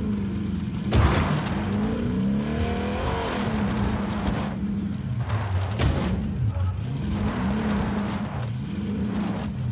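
A truck crashes into other trucks with loud thuds.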